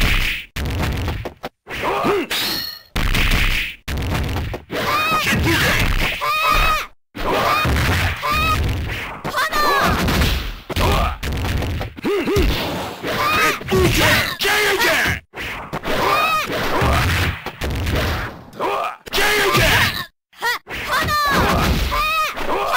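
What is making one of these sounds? Punches and kicks land with sharp smacks in a fighting game.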